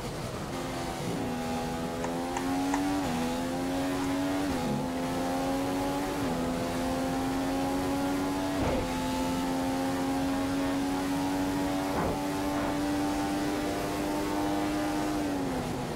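A racing car engine screams at high revs, rising in pitch and dropping briefly with each gear change.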